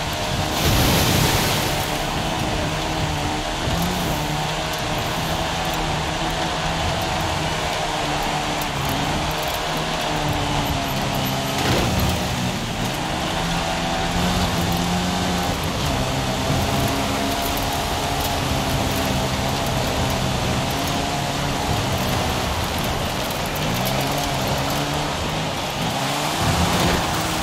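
A small car engine revs high and changes pitch as gears shift.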